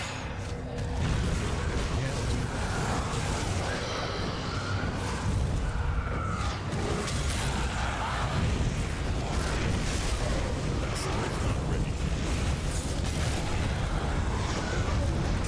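Magic spells burst and crash rapidly in a loud fight.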